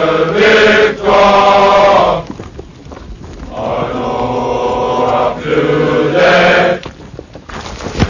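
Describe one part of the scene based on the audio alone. Young men shout loudly close by.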